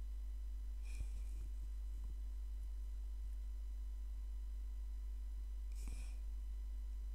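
A small plastic figure taps lightly against a table.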